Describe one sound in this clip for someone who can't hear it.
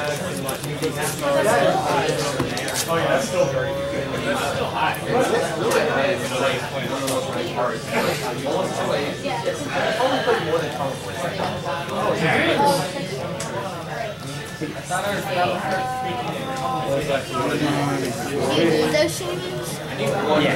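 Playing cards slide and tap softly on a play mat.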